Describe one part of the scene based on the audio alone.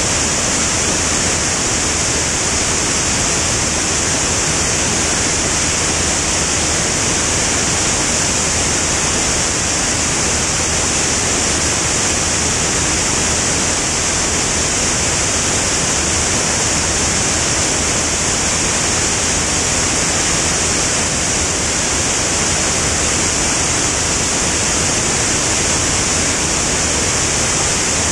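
Wind rushes loudly past the aircraft.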